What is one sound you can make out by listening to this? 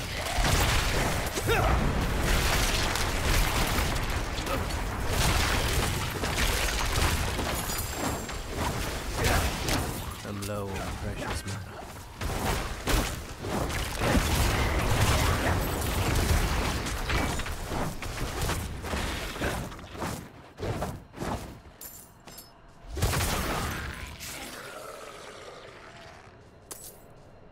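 A young man talks through a headset microphone.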